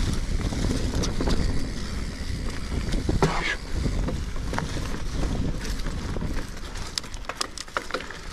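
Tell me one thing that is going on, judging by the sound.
Wind rumbles past a moving rider.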